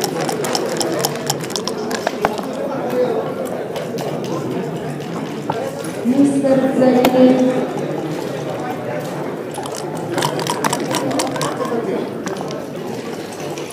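Dice clatter onto a wooden board.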